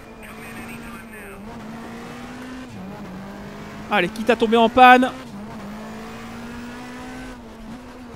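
A racing car engine hums steadily, dipping in pitch as gears change.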